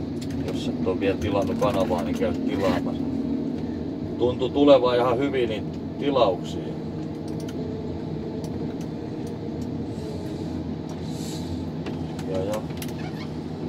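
A diesel forest harvester's engine drones, heard from inside the cab.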